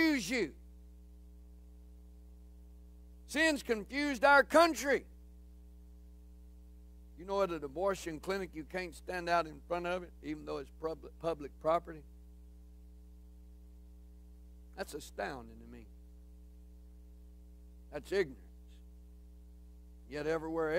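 A middle-aged man speaks calmly through a microphone and loudspeakers in an echoing hall, with pauses.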